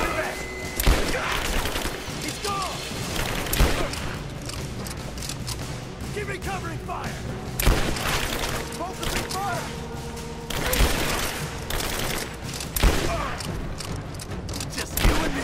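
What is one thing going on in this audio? Rifle shots crack and echo loudly in a large hall.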